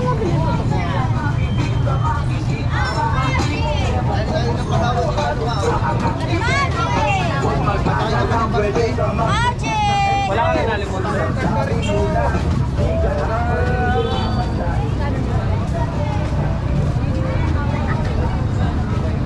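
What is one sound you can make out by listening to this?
Many men and women chatter and call out nearby in a busy crowd.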